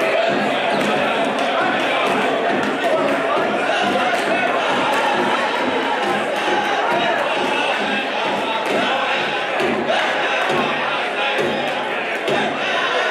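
A large crowd cheers and chatters loudly in an echoing hall.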